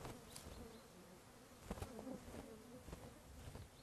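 A small bird's wings flutter briefly as the bird flies past.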